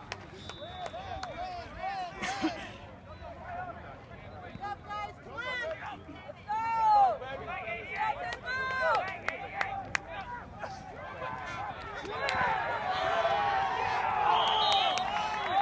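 A crowd of spectators cheers and shouts outdoors, growing louder near the end.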